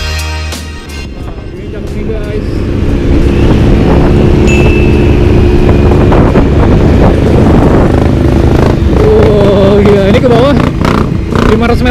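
A motorcycle engine hums steadily and revs up as the bike speeds along.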